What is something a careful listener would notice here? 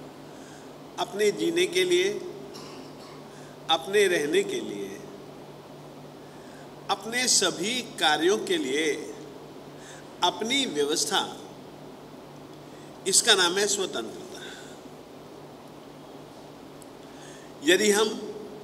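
An elderly man speaks slowly in short phrases through a microphone, with pauses between them.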